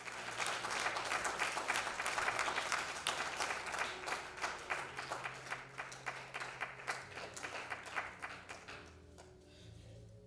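A woman sobs loudly close by.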